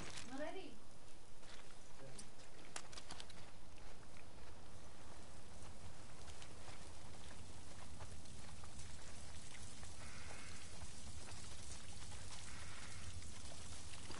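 Footsteps crunch through grass and undergrowth.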